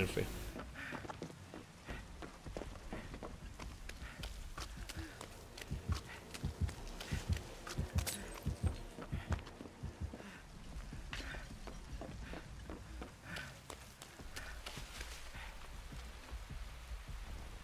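Footsteps thud quickly as a man runs.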